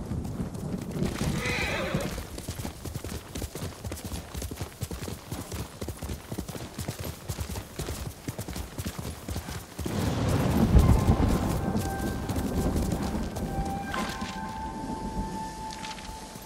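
Horse hooves clop steadily on soft ground.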